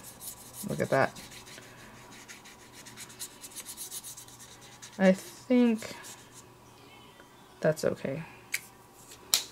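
A paintbrush dabs and brushes softly on paper.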